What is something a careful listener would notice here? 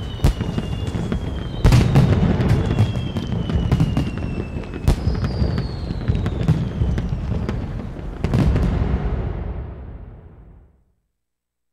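Fireworks pop and crackle overhead.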